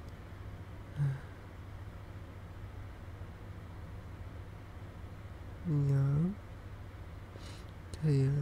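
A man speaks softly and close to the microphone in short phrases.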